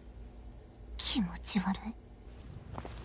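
A young woman murmurs softly.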